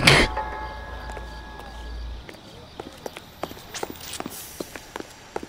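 Footsteps tap on pavement at a brisk pace.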